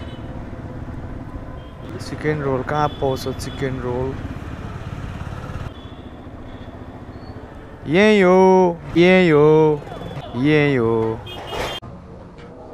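A motorcycle engine hums steadily while riding along a street.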